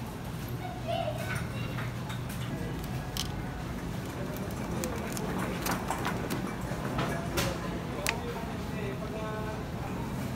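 Plastic packaging crinkles and rustles as fruit is handled.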